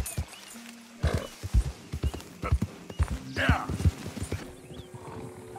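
A horse's hooves thud on a forest floor.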